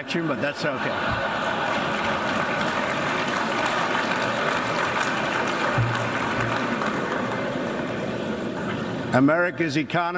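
A large crowd laughs and murmurs in a big echoing hall.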